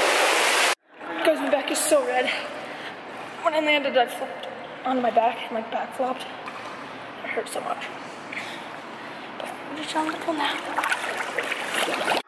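A young woman talks close up, in a lively way.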